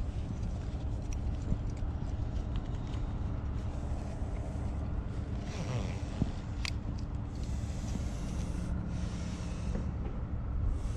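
A ratchet strap buckle clicks and rattles as hands work it.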